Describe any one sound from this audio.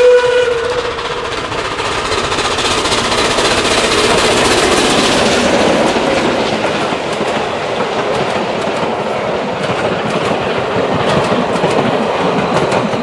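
A train rumbles and clatters past close by on the rails.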